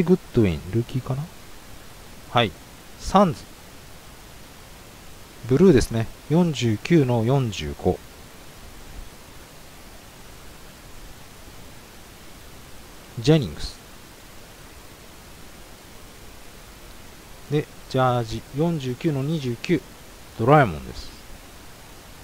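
A young man talks calmly into a microphone, close by, in short bursts.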